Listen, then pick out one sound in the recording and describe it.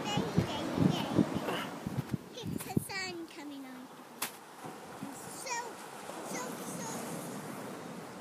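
Small waves break on a sandy shore in the distance.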